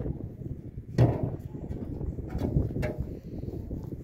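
Concrete blocks knock against each other.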